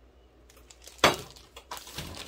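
A metal cup knocks against a metal bowl.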